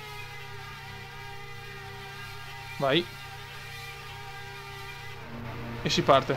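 A racing car engine idles with a steady hum.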